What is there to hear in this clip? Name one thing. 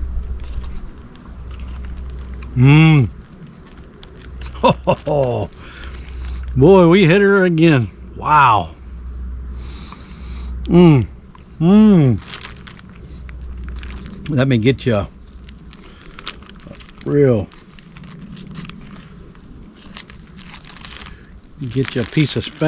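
A plastic bag crinkles as a spoon scoops from it.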